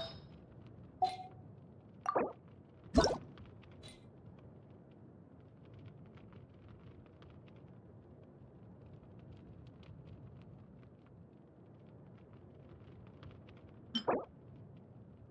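Short game menu chimes and clicks sound now and then.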